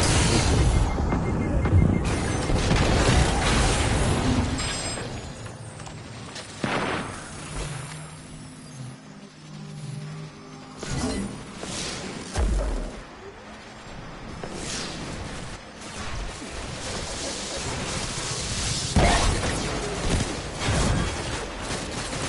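Gunfire and explosions crack and boom in a video game.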